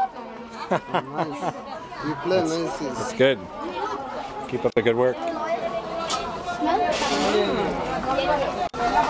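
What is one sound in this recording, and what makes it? A busy market crowd chatters all around.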